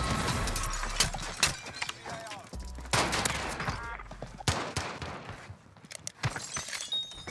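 Pistol shots ring out sharply, several times.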